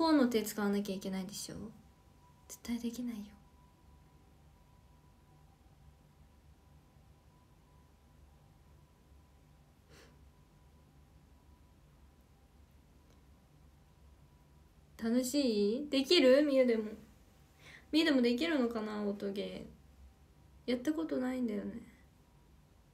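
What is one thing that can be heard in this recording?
A young woman speaks close to a microphone in short bursts, with pauses between.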